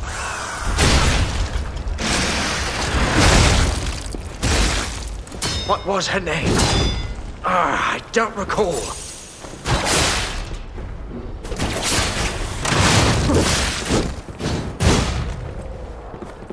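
Heavy blades clash and strike in repeated bursts.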